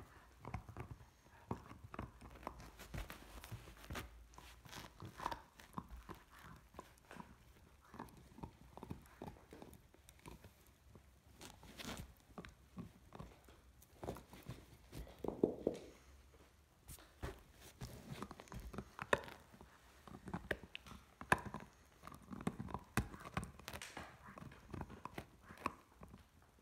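A dog chews and gnaws on a rubber toy close by.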